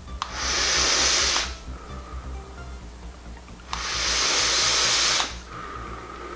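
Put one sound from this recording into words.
A young woman draws in a long hissing breath.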